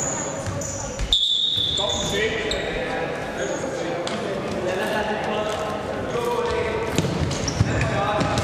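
Young men shout to each other in an echoing indoor hall.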